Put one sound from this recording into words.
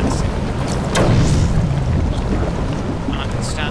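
An explosion booms and rumbles in a hollow, echoing space.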